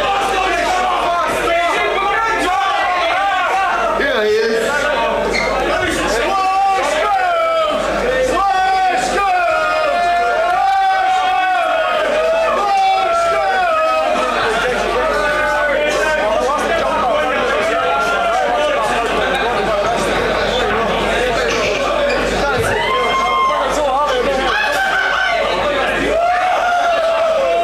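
A rock band plays loudly through amplifiers.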